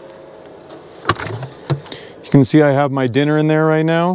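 A plastic lid clicks open.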